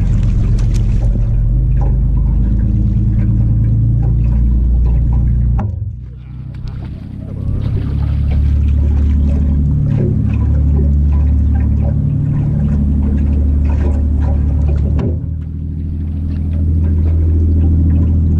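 Water splashes against a boat hull.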